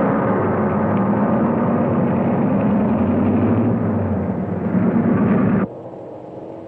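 A car engine rumbles as a car drives past.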